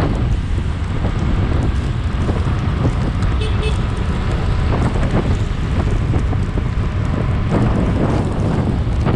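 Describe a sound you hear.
Wind rushes and buffets past a motorcycle riding along a road.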